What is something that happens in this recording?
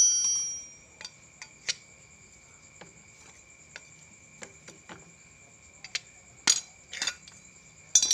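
A metal rod scrapes and taps against a metal part.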